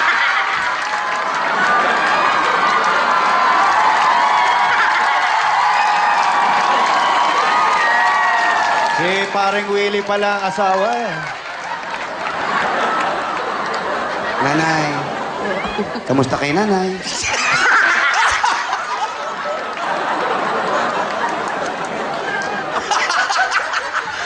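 A crowd cheers and screams loudly.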